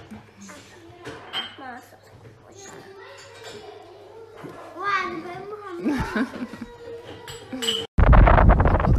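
A young girl talks softly close by.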